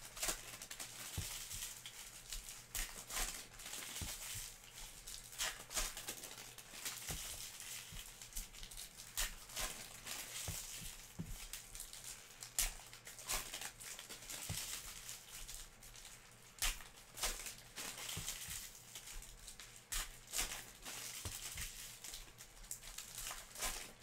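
Foil card packs crinkle and rustle in someone's hands.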